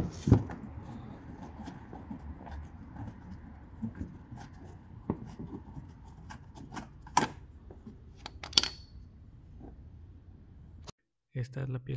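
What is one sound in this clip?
Fingers tap and scrape against a plastic panel close by.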